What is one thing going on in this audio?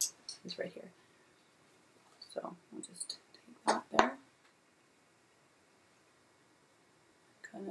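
A woman speaks close to a microphone, calmly and in short phrases.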